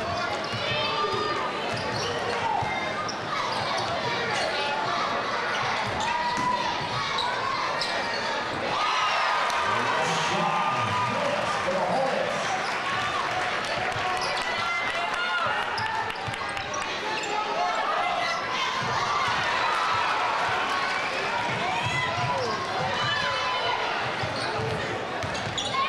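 A crowd in a large echoing gym chatters and cheers throughout.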